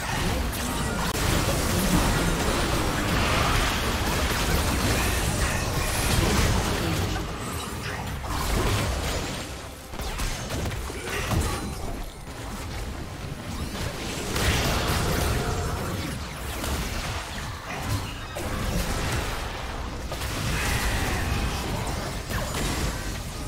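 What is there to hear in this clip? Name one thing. Magic blasts crackle and boom in a fast, chaotic battle.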